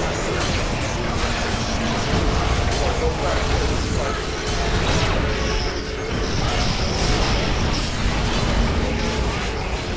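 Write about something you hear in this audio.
A beam weapon hums loudly.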